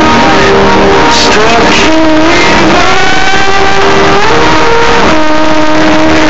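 Loud live music plays from a stage, heavily distorted.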